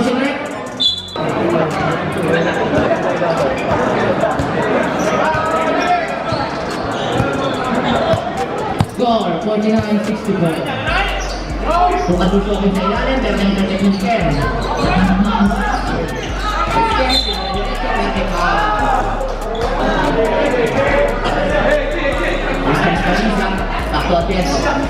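A large crowd chatters and cheers loudly in an open, echoing space.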